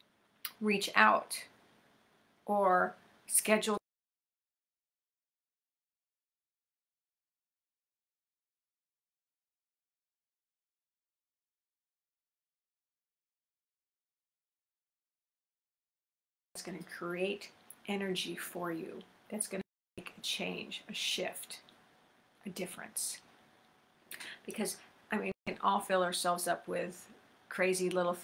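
An older woman speaks with animation, close to the microphone.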